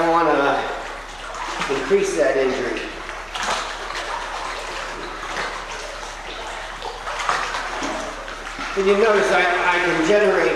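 Water splashes and sloshes as a man wades.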